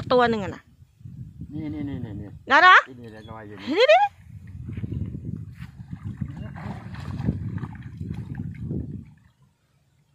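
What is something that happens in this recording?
A man sloshes his hands through thick mud and water.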